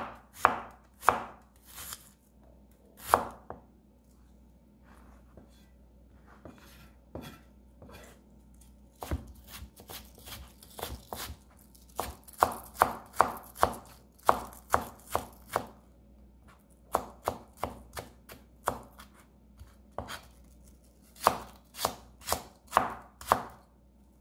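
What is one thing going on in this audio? A knife chops on a cutting board with sharp, quick taps.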